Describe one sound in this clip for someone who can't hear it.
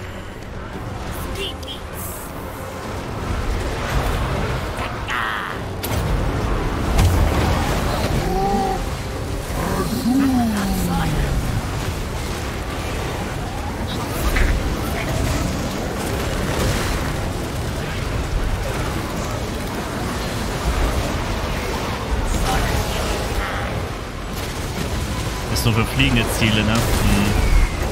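A large battle rages with a dense roar of clashing armies.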